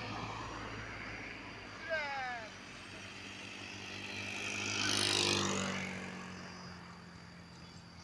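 An electric model biplane's propeller whines as it flies past overhead.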